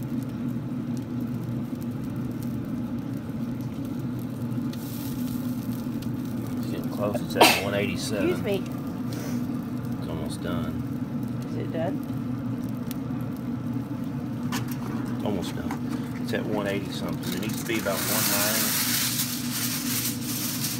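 A smoker grill's fan hums steadily.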